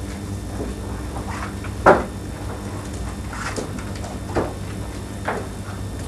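Paper rustles and crinkles as a packet is handled.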